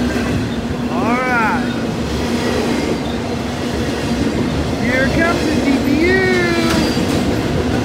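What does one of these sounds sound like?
Train wheels squeal against the rails.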